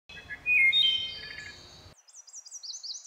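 A songbird sings a fluting, ringing phrase close by.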